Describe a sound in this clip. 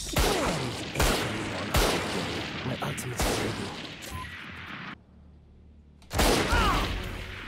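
Gunshots ring out in quick bursts.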